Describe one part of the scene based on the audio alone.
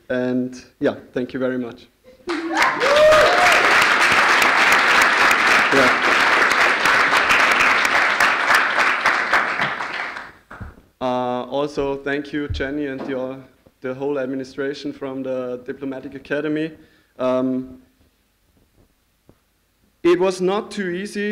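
A young man speaks calmly through a microphone in a large echoing hall.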